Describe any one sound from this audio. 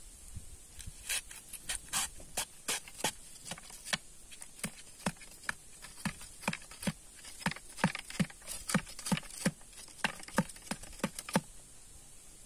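A steel bar thuds and clinks repeatedly against rock.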